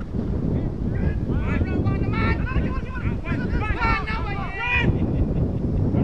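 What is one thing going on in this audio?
Young men call out and shout to each other across an open field.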